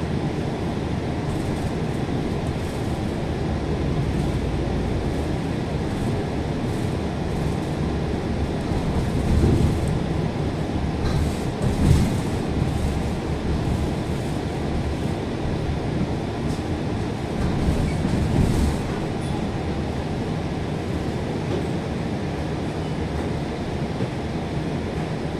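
A bus engine rumbles steadily from inside the bus as it drives along.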